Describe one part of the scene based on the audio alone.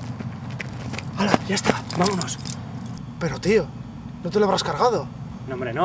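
A young man speaks close by, calmly.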